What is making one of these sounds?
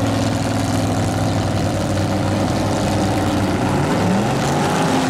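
Loud car engines idle with a deep, lumpy rumble.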